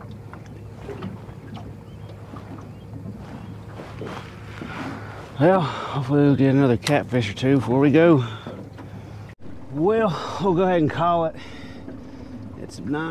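Wind blows steadily over open water.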